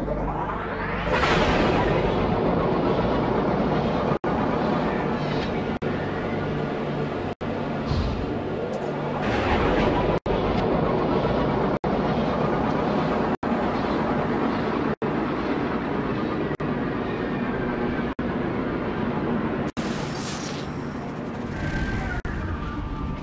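A spacecraft engine roars steadily, surging now and then.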